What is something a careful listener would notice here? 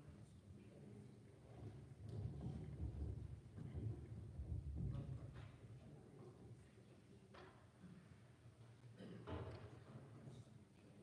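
A man speaks calmly at a distance in an echoing hall.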